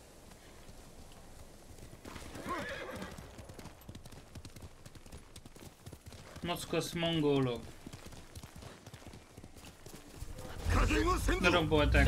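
Horse hooves thud at a gallop.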